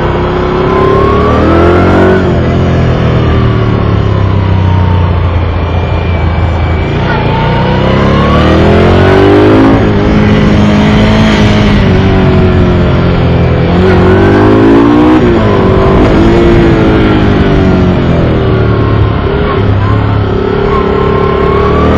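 A motorcycle engine roars close by, its pitch rising and falling as it speeds up and slows for bends.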